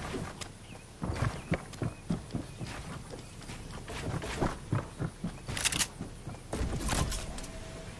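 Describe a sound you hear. Wooden building pieces snap into place with quick knocks.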